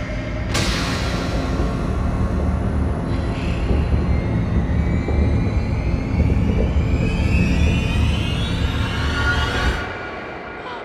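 Strong wind roars and howls.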